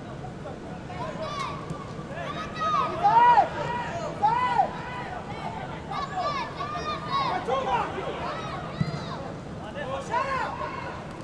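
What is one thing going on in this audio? Spectators shout and call out from the stands.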